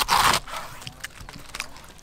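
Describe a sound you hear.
Cabbage leaves crunch as they are torn apart.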